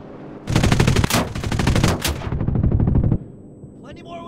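Machine guns fire in loud rapid bursts.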